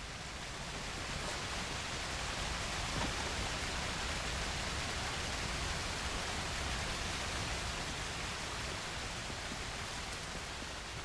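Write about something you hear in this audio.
A waterfall rushes and splashes nearby.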